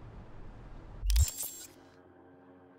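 A short electronic whoosh sounds as a game menu opens.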